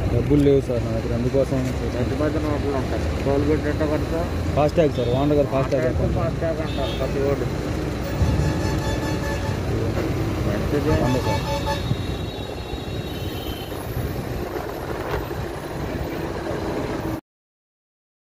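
A heavy truck's engine rumbles nearby on the road.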